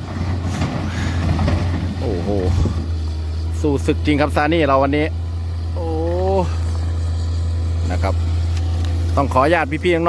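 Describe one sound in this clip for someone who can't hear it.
A diesel excavator engine rumbles steadily.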